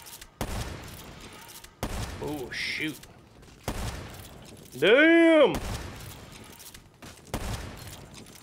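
Loud rifle shots crack one at a time, each with a short rumbling tail.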